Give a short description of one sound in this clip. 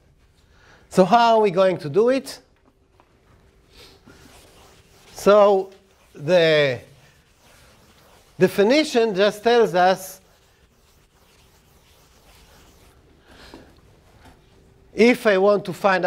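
An older man lectures calmly, heard close through a microphone.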